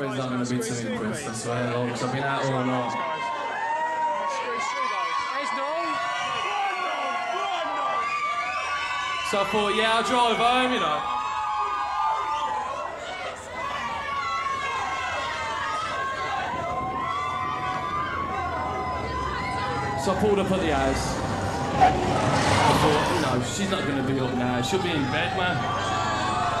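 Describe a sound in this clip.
A man sings into a microphone over a live band.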